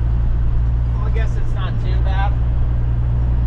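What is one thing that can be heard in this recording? A man speaks briefly nearby over the engine noise.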